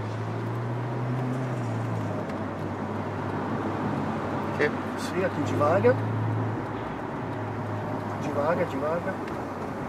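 A car engine hums steadily while driving on a highway.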